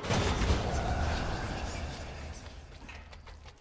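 A magical blast bursts with a deep rumble and fades.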